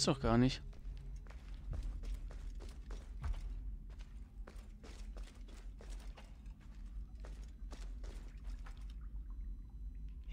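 Footsteps fall on stone.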